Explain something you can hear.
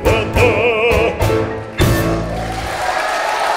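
A band with piano, double bass and drums plays a final chord.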